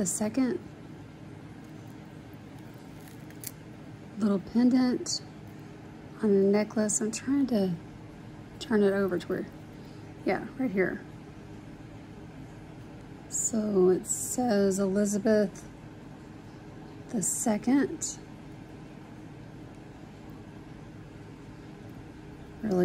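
Small metal jewellery pieces clink softly together.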